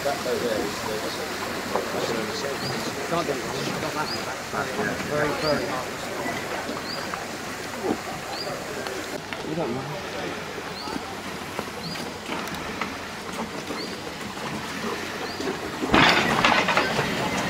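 A boat engine idles with a low chug.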